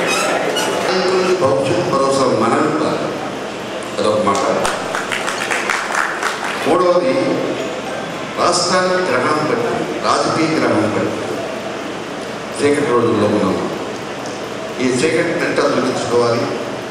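An elderly man speaks with animation into a microphone over loudspeakers.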